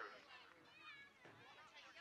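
A man calls out instructions loudly from the sideline.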